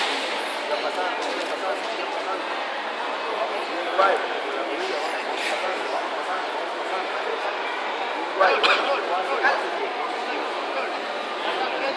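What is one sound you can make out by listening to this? A crowd of onlookers chatters steadily in a large echoing hall.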